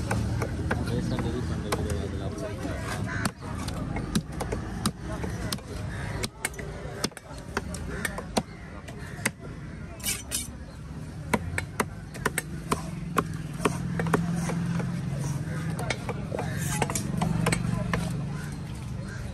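Hands slap and shift pieces of wet fish on a wooden block.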